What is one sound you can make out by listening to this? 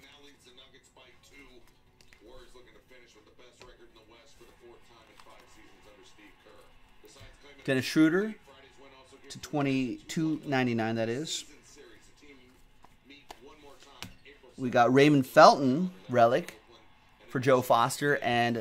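Trading cards rustle and slide between fingers.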